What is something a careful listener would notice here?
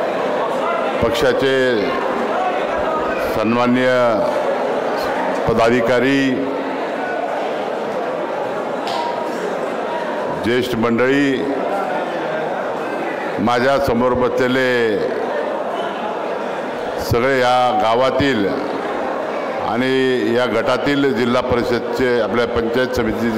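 A man speaks forcefully through a microphone and loudspeakers, in a large echoing hall.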